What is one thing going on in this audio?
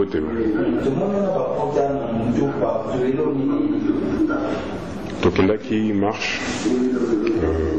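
A man speaks in a strained, pained voice close by.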